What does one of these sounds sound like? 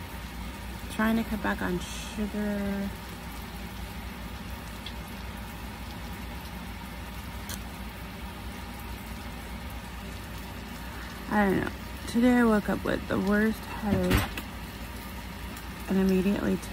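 A woman speaks close up in a low, drowsy voice.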